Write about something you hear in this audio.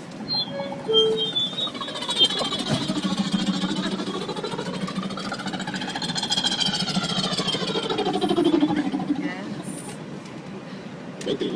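A train's motors whine, rising and falling in pitch.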